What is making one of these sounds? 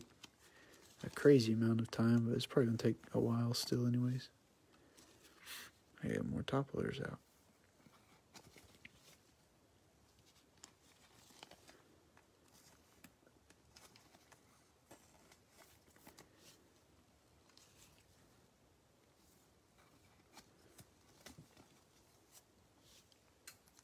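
Plastic card sleeves rustle and tap softly as gloved hands handle them.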